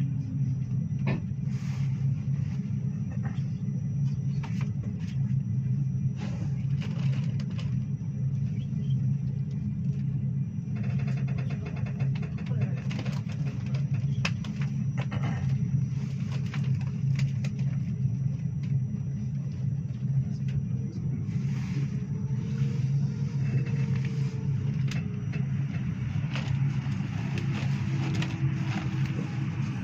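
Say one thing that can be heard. Train wheels click and knock over rail joints.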